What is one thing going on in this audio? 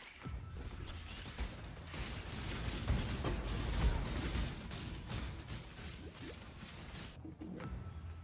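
Spell blasts and explosions crackle and boom in a rapid flurry.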